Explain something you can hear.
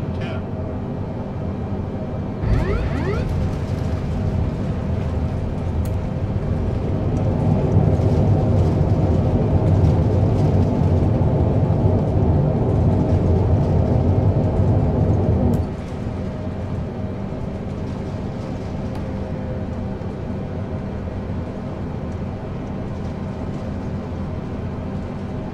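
Twin-engine jet airliner engines roar, then die down, as the jet airliner rolls out along a runway.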